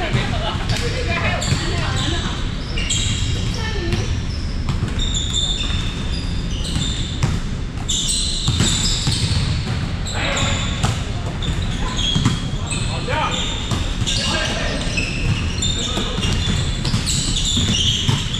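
Players call out to each other in a large echoing hall.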